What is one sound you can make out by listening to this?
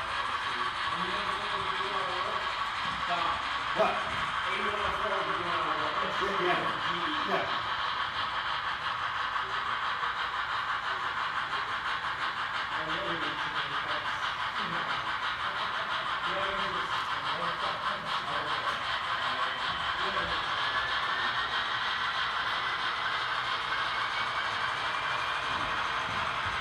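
A model train rolls along its track.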